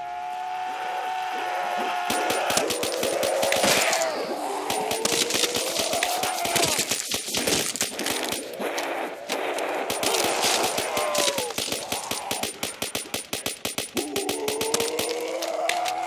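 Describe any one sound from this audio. Zombies growl and moan.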